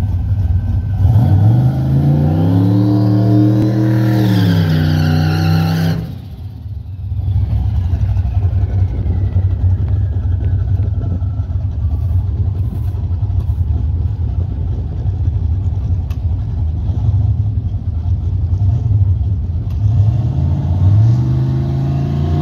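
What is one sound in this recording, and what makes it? A car engine revs loudly, rising and falling.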